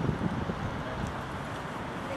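A man speaks calmly through a microphone outdoors.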